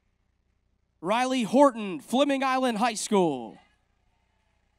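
A man announces a name through a loudspeaker in a large hall.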